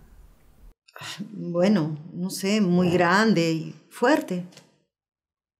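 A middle-aged woman answers hesitantly, close by.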